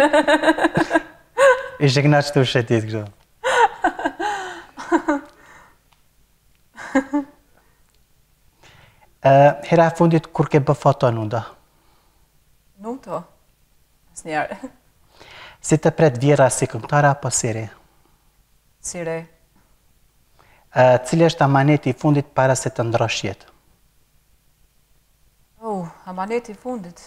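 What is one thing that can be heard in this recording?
A woman speaks cheerfully and calmly, close to a microphone.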